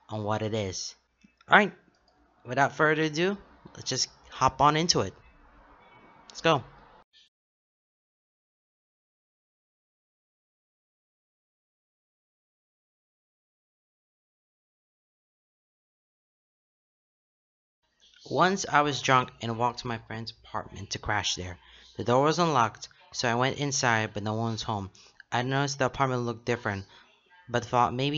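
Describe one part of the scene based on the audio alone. A young man speaks calmly and closely into a microphone.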